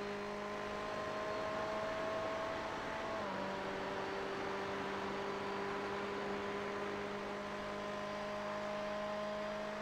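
A racing car engine drones steadily, dropping in pitch once as it shifts gear.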